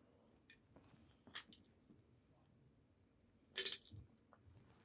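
A metal can clinks as it is handled close by.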